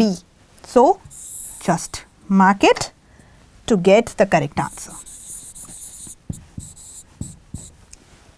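A marker squeaks and scratches on a board.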